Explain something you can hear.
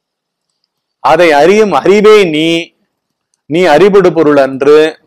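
A middle-aged man speaks with emphasis into a close microphone.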